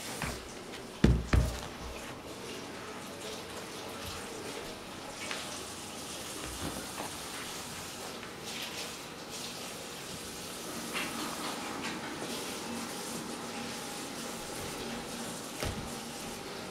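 A dog's paws thump softly on a carpeted floor.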